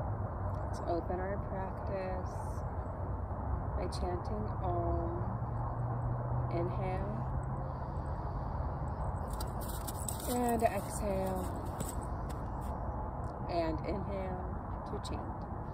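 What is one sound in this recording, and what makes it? A young woman speaks softly and calmly close by.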